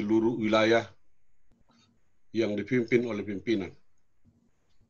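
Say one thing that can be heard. A middle-aged man speaks calmly and close to the microphone.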